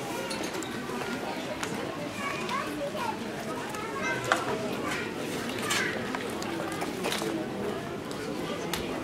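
A crowd of adults and children murmurs and chatters nearby outdoors.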